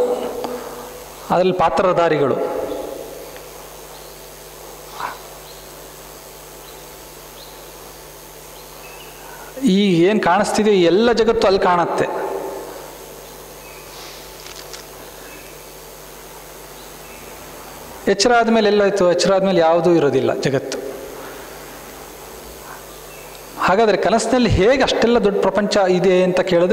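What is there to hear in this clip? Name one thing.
A man speaks calmly into a microphone, in bursts with long pauses between them.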